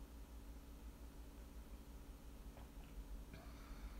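A young woman sips a drink.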